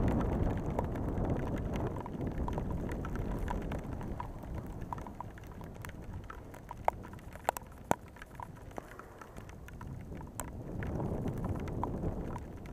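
Rain patters and drips onto a surface close by, outdoors.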